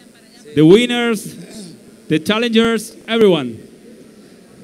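A man announces loudly through a loudspeaker in a large echoing hall.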